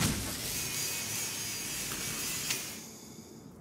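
A cutting beam hisses and crackles against metal.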